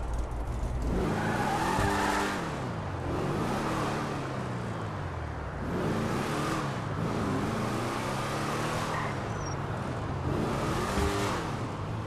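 A car engine revs up and down repeatedly as the car drives.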